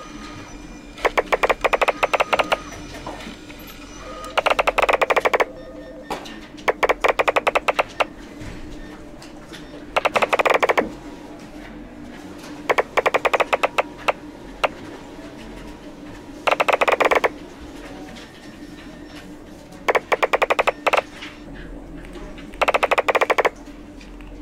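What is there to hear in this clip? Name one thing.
Bursts of rapid ticking pops sound as paper sheets stack up one after another.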